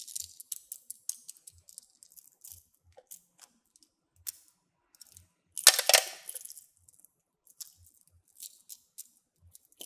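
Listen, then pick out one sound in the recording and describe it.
Plastic beads rattle and click softly.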